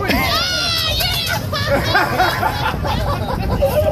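A person splashes into a tank of water.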